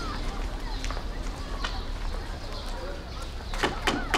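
People walk on hard ground.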